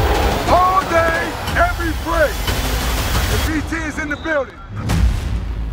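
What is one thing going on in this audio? A man yells with excitement close by.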